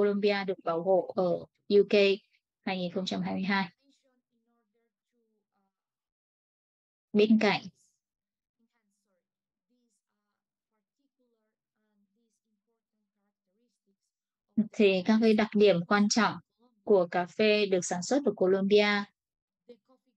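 A woman speaks calmly over an online call, with long pauses.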